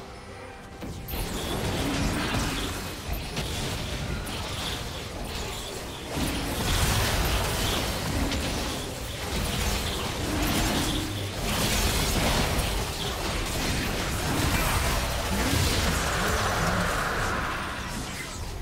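Magic blasts and hits crash and whoosh in a video game battle.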